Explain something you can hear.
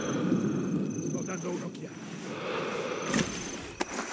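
A fire crackles softly.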